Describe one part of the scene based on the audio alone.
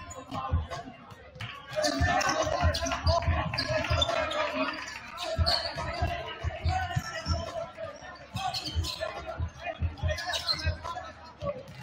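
A crowd murmurs and chatters in the stands.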